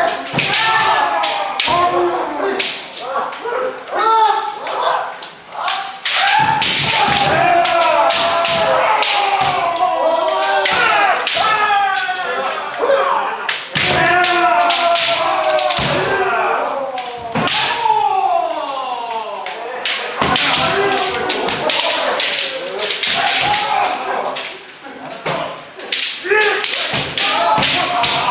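Bare feet stamp on a wooden floor.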